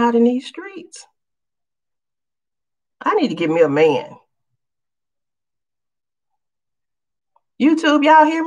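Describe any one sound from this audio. A woman speaks calmly and close, in short bursts with pauses.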